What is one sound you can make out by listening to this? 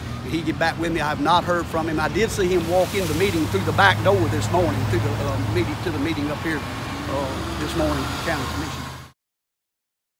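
An elderly man speaks with animation close to a microphone outdoors.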